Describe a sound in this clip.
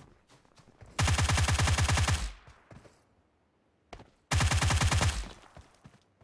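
A rifle fires rapid bursts of loud shots.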